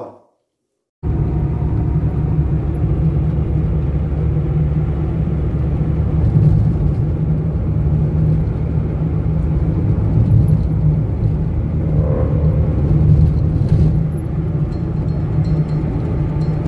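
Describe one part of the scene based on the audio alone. A car engine rumbles steadily as the car drives along a road.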